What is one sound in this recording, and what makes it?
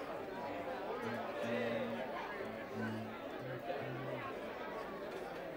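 An upright bass is plucked in low notes.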